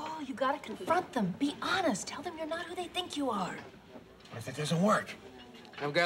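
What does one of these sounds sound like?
A woman answers calmly.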